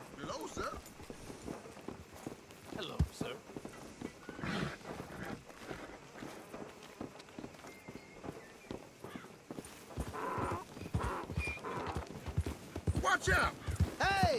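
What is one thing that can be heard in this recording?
Horse hooves thud on dirt.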